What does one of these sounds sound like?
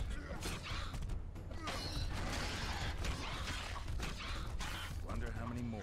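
A sword clashes in a fight.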